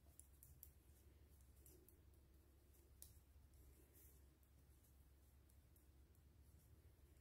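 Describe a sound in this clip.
Yarn rustles softly as a crochet hook works it.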